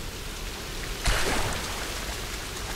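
Water splashes loudly as someone plunges in.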